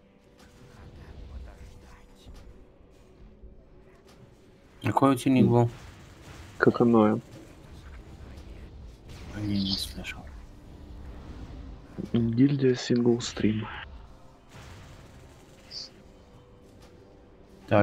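Magic spells crackle and whoosh in a fight.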